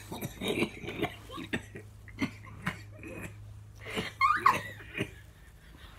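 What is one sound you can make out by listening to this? A man coughs and splutters close by.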